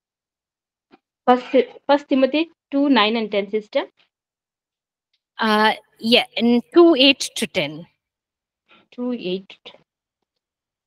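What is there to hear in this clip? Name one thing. A woman speaks calmly into a microphone, heard over an online call.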